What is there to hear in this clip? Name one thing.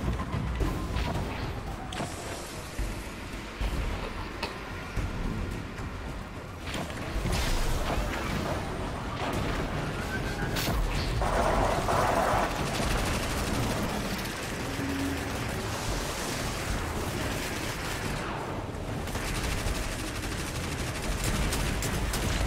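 Gunfire crackles in sharp bursts.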